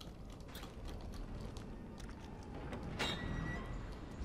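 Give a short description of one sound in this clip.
A metal door clanks as it is pushed open.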